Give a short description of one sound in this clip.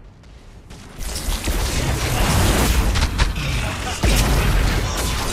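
Magic blasts and hits crackle and boom in a fast, noisy fight.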